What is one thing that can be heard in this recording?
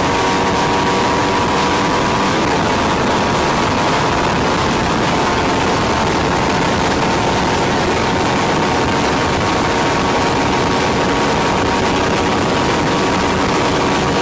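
Wind roars past outdoors at speed.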